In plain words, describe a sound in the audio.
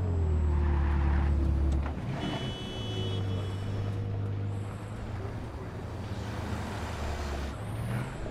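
A sports car engine hums as the car cruises along a road.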